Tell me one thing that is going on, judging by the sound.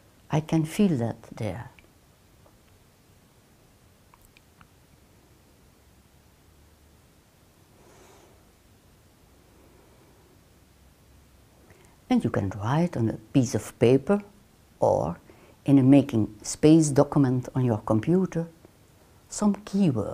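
An elderly woman speaks calmly and close to a microphone.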